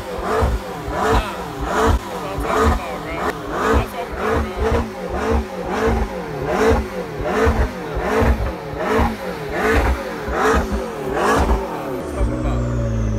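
A sports car engine revs again and again in quick bursts.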